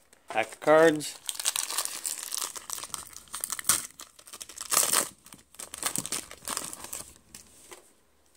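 A foil wrapper crinkles and rips.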